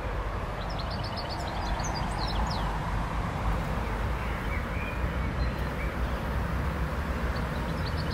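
A bee buzzes softly close by.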